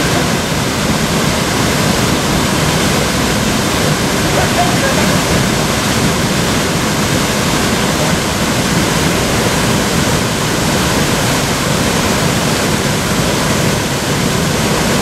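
River rapids rush and roar loudly nearby.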